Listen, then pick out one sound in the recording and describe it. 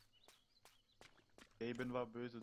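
Footsteps tap on a stone floor.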